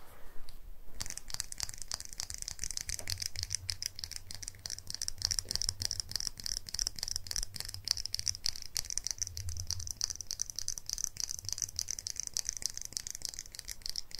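Fingernails rapidly tap and scratch on a hard object up close.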